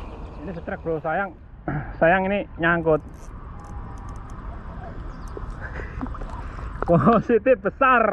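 A fishing reel clicks and whirs as its handle is cranked.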